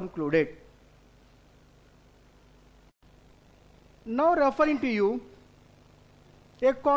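A middle-aged man speaks calmly into a microphone, in short bursts.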